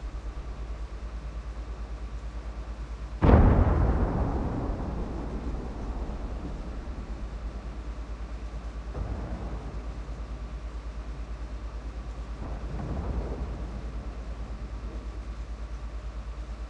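A tank engine idles with a steady low rumble.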